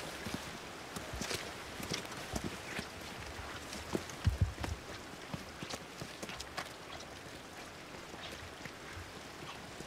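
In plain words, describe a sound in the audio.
Footsteps crunch on a stony path.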